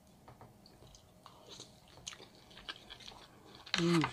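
A young woman chews food with wet mouth sounds close to a microphone.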